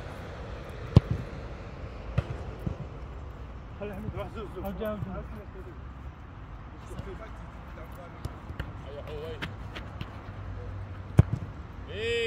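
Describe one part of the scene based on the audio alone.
A football is struck hard with a sharp thump.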